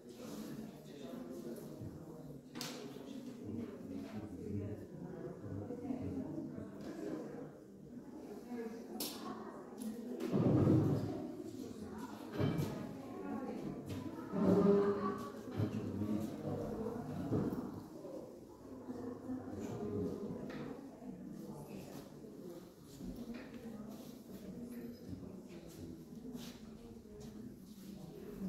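Men murmur and talk quietly nearby.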